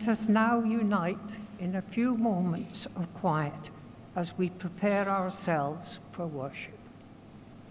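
An elderly woman speaks calmly through a microphone in an echoing hall.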